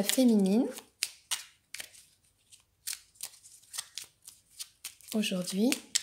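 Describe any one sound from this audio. Playing cards shuffle with quick papery flicks.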